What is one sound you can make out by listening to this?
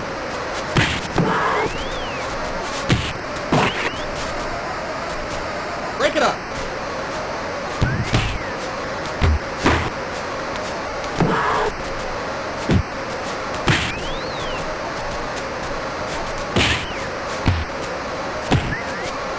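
Punches thud in quick, sharp hits.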